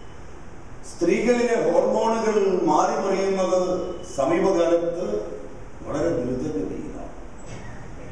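An elderly man speaks with animation through a microphone in an echoing room.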